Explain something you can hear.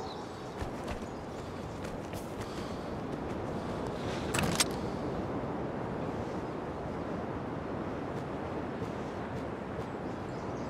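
Water laps against the shore nearby.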